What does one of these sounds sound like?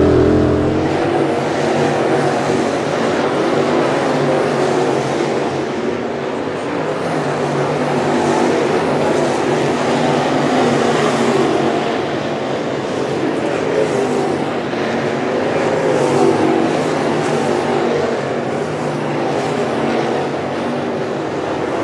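Several race car engines roar steadily as the cars race past at a distance.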